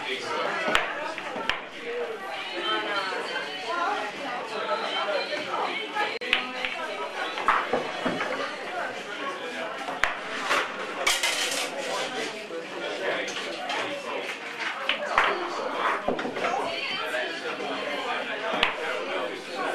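Billiard balls click against each other on a table.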